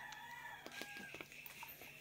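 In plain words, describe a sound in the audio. A young woman gulps water from a plastic bottle.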